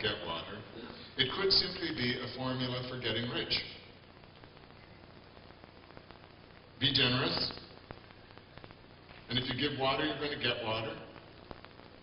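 A man speaks calmly into a microphone over loudspeakers in a large echoing hall, pausing between phrases.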